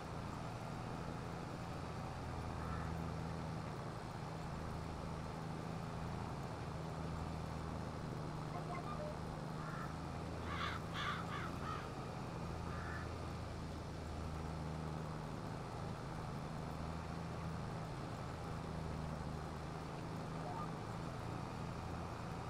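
A tractor engine drones steadily at a low pitch.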